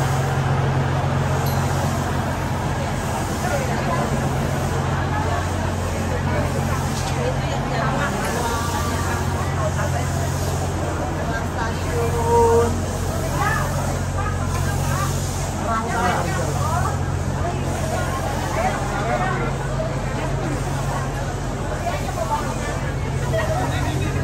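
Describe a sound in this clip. A train's engine hums steadily close by.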